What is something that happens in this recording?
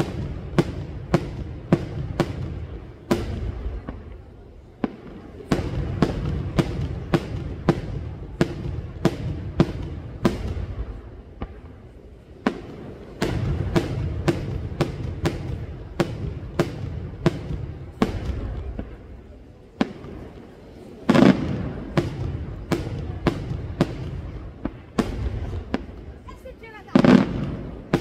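Fireworks bang in rapid bursts, echoing off the mountains.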